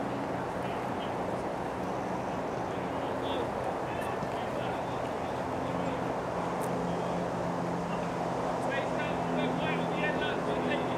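Many feet jog and thud softly on grass outdoors.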